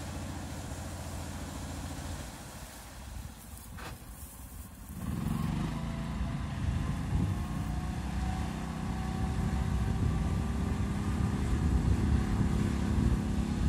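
An engine rumbles steadily as an off-road vehicle drives through water.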